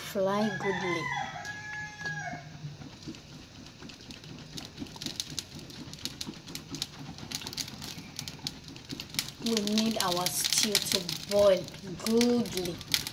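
Food sizzles and crackles inside a covered pot.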